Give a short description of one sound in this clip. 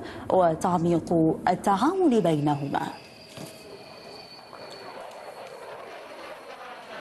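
A jet engine whines and roars steadily nearby.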